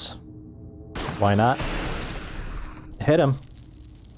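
An explosion booms with a rushing roar.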